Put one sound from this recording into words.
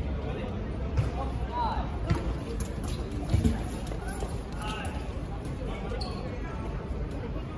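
A ball thuds off a player.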